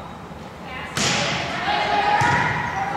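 Young women players shout and call out to each other.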